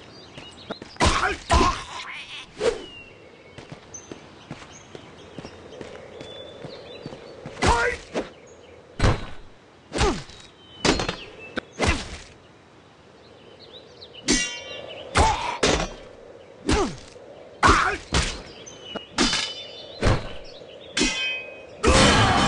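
Blades strike and clash in a fight, in sharp repeated hits.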